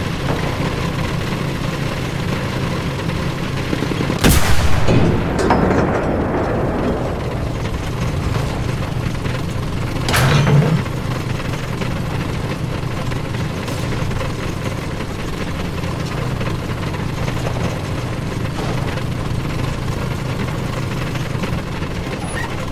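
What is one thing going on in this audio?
A tank engine rumbles steadily throughout.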